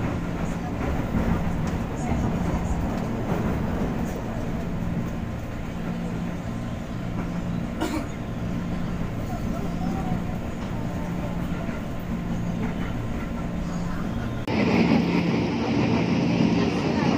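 A train's wheels clatter rhythmically over rail joints.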